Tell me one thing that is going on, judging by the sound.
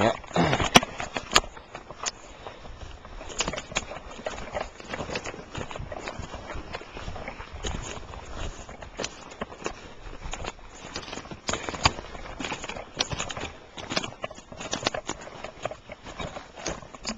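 Footsteps crunch on snow and twigs outdoors.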